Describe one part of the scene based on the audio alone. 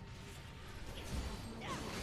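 Electric magic crackles and bursts.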